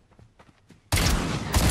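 A rifle fires a loud burst of shots.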